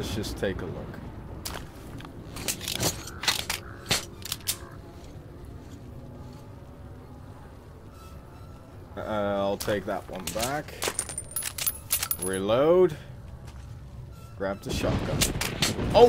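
Metal gun parts click and clack as weapons are handled.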